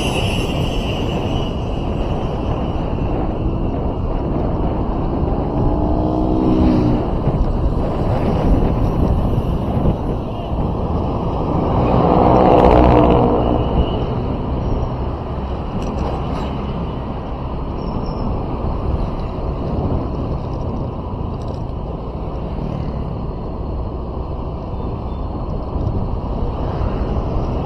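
Wind and engine noise rumble steadily from a moving vehicle.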